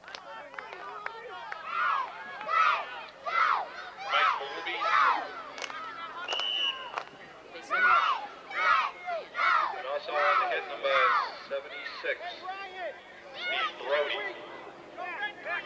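Young boys shout and call out loudly nearby.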